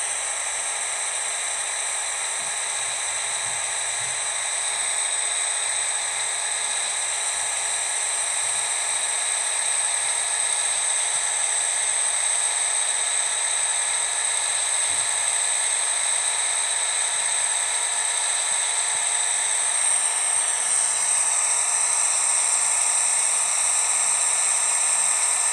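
A truck engine drones steadily as the truck speeds up.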